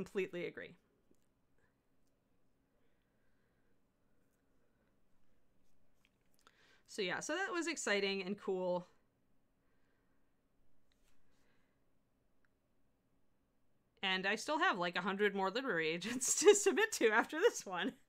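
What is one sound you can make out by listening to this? A middle-aged woman talks calmly into a close microphone, with pauses.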